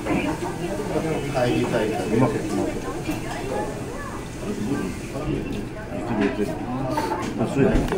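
A woman slurps soup from a spoon.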